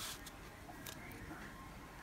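A small plastic cap twists and clicks on a bottle.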